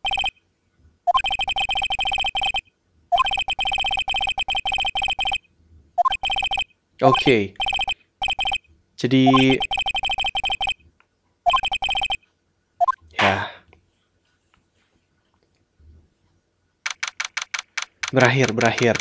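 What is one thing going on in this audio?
Rapid electronic beeps chatter as text is printed.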